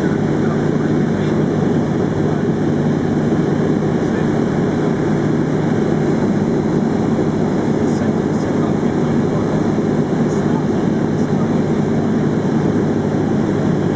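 Wind rushes past the plane's cabin.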